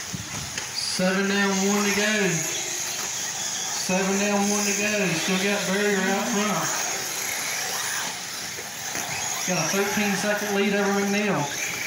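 A remote-control car's small motor whines in bursts as the car speeds along a dirt track.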